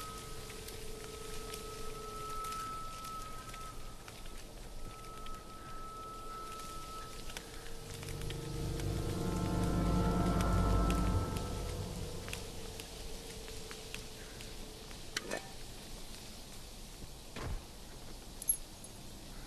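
Flames crackle and hiss nearby.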